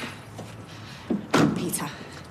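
A young woman speaks briefly nearby.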